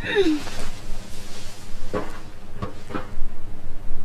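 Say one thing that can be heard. A metal bin thuds as someone climbs onto it.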